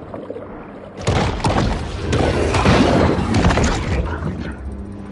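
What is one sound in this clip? A large fish bites into prey with a loud, churning underwater crunch.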